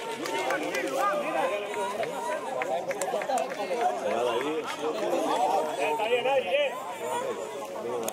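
Many young men call and shout to each other across an open outdoor field.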